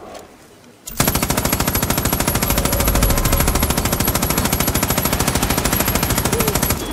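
A gun fires in a rapid, continuous burst.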